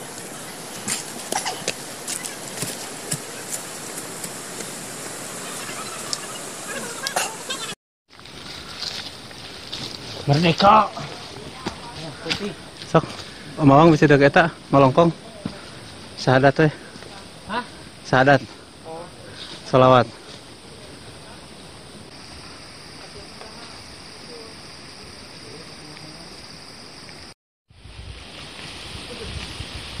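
Footsteps crunch on a dirt forest path.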